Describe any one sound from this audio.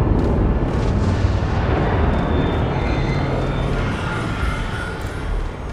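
Heavy footsteps thud on a hard floor.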